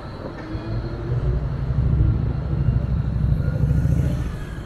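A bus drives past with a low engine roar.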